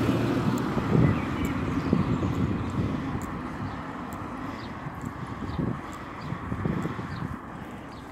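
A small car drives away along the road and fades.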